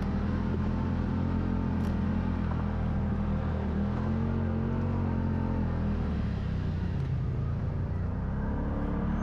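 An off-road vehicle's engine rumbles steadily as it climbs a dirt trail.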